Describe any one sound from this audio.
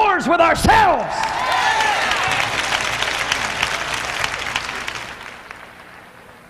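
A large crowd claps and cheers.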